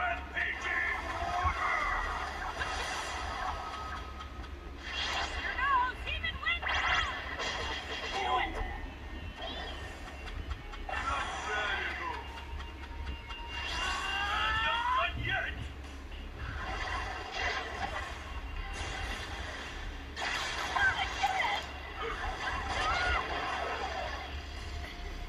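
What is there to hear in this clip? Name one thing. Fighting game sound effects whoosh and crash from a small handheld speaker.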